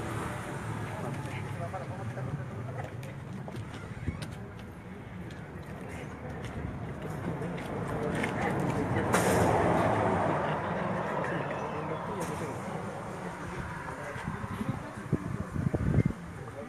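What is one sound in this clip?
Several men and women talk at once outdoors, nearby and in the distance.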